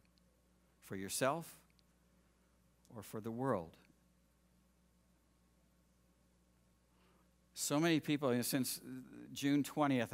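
An older man speaks calmly into a microphone, heard through a loudspeaker.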